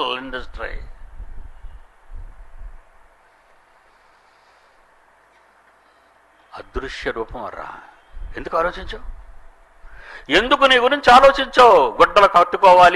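An elderly man speaks into a microphone, pausing and then talking with rising emphasis.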